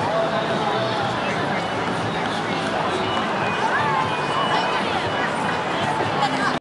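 A crowd chatters outdoors in a busy open square.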